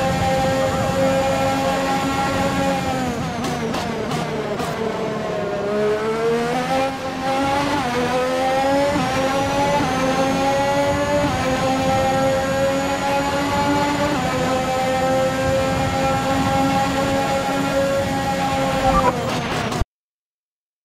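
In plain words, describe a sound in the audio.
A racing car engine whines at high revs, dropping in pitch when braking and rising again as it speeds up.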